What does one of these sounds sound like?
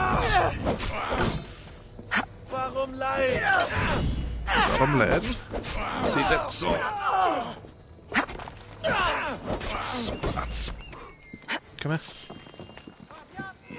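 Blades clash and strike in a close fight.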